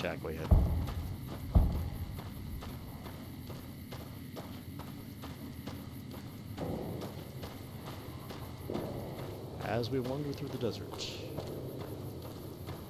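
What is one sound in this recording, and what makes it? Footsteps crunch steadily on loose gravel.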